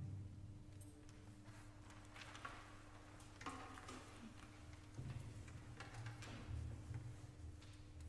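An orchestra plays softly in a large echoing hall.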